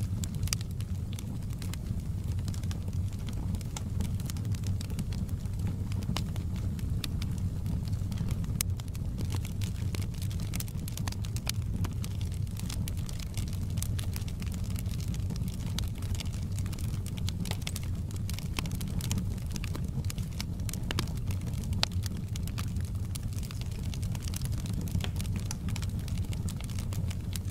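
Flames roar softly with a low steady rumble.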